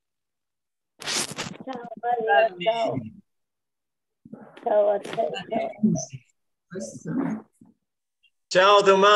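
Elderly people speak in turn over an online call, heard through a small speaker.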